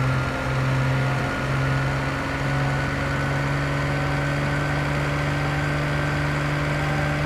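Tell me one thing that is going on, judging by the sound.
Tyres roll on a road surface.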